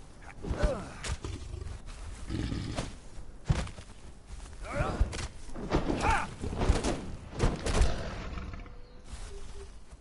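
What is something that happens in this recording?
Heavy axe blows thud and clang during a fight.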